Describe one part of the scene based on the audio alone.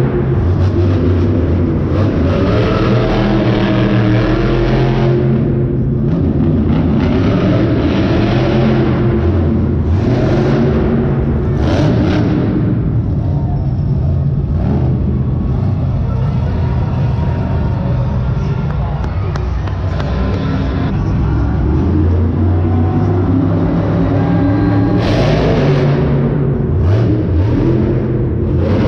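Monster truck engines roar loudly across a large echoing arena.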